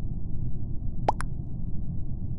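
A short electronic chime pops up.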